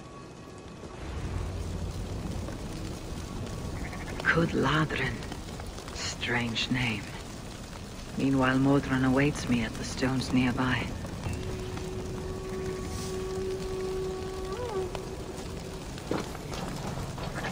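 A bonfire crackles outdoors.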